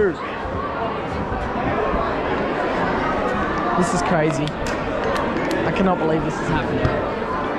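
Young men talk and call out loudly in a large, echoing room.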